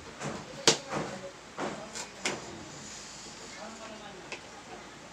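A knife taps on a plastic cutting board.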